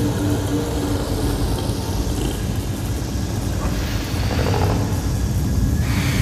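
Sparks crackle and hiss.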